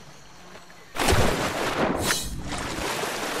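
A body splashes heavily into water.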